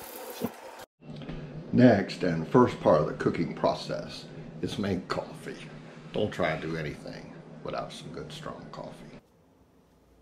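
An older man talks calmly, close by.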